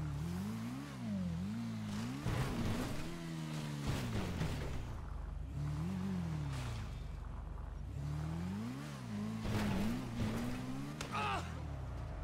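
A motorcycle engine revs up and down.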